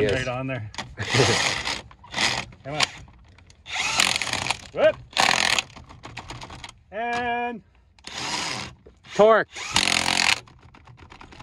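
An impact wrench rattles in loud short bursts.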